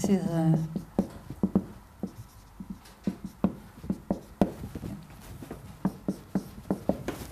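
A marker taps and squeaks on a whiteboard.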